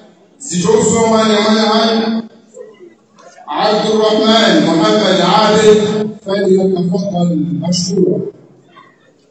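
A young man chants loudly into a microphone in a large echoing hall.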